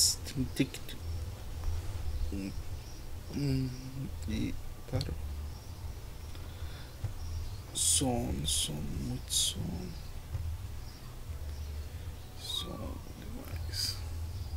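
A man speaks in short, strained bursts close to a microphone.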